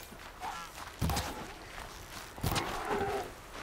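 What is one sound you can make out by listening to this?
A bowstring twangs as an arrow is shot.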